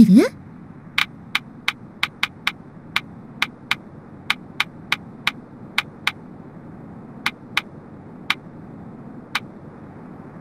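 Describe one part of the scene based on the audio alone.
A game menu cursor ticks with short, sharp clicks as the selection moves.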